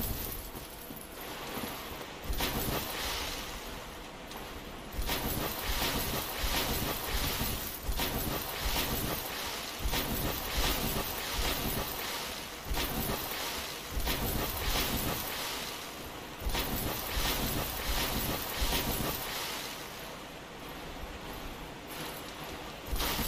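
A game character splashes steadily through water.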